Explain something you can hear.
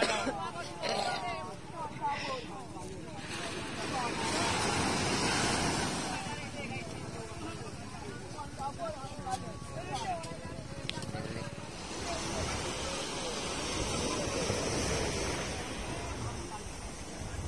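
Small waves wash and break on the shore.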